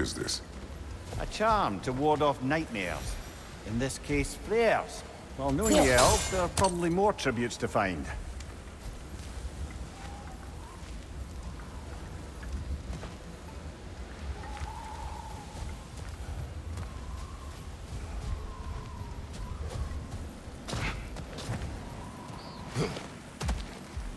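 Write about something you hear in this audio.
Heavy footsteps crunch on rocky ground.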